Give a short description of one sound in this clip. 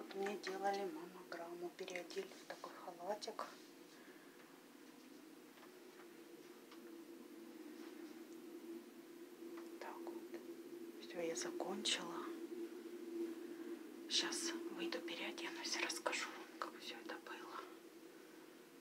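A young woman speaks softly and closely, her voice slightly muffled.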